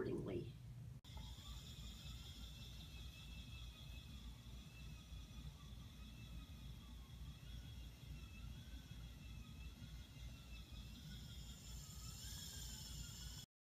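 A spinning wheel whirs and rumbles steadily.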